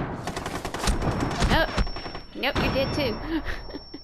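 Gunshots fire in quick bursts close by.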